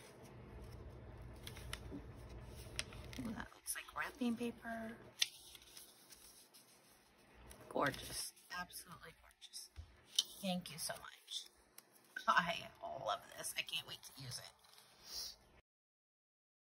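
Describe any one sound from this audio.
Paper rustles and crinkles as it is handled up close.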